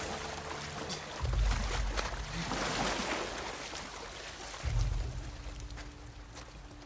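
Footsteps scuff softly across a wet, littered floor.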